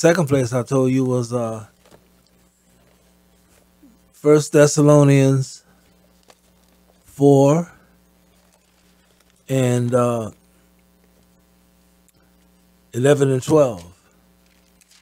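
A middle-aged man reads aloud slowly into a microphone, pausing between phrases.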